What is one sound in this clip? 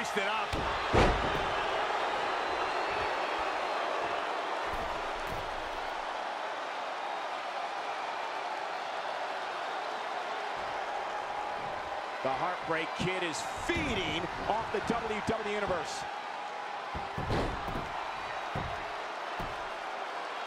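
A referee slaps the ring mat several times.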